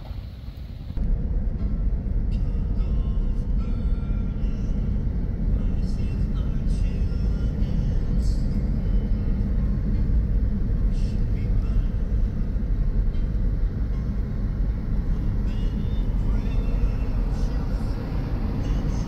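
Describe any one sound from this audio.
A car drives along a road with a steady low rumble, heard from inside.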